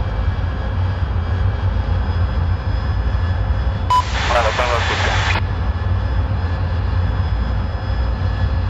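A jet engine roars steadily with a low rumble.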